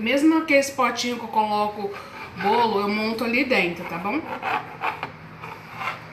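A knife cuts through soft bread.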